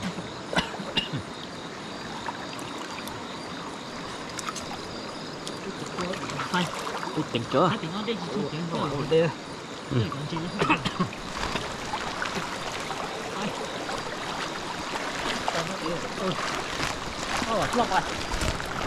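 Water sloshes and splashes as people wade through it.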